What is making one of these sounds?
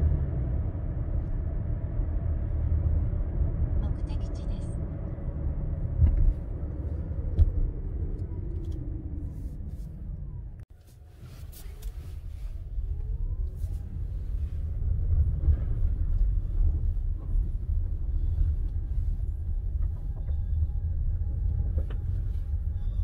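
A car's engine hums steadily from inside the car.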